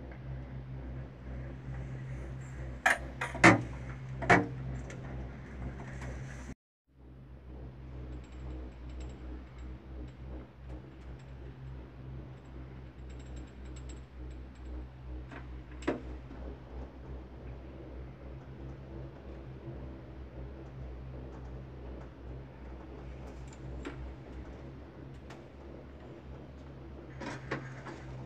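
A gondola cabin hums and rumbles, heard from inside, as it travels along its cable.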